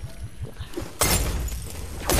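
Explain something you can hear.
A pickaxe clangs against metal.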